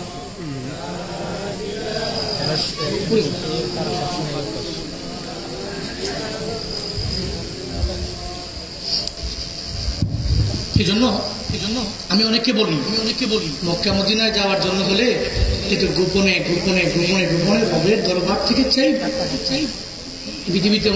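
A man speaks with feeling into a microphone, heard through loudspeakers.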